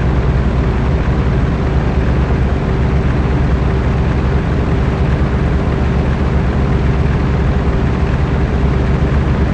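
Tyres roll over a dirt road.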